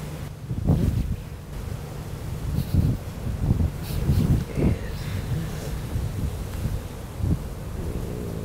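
A young man talks quietly nearby.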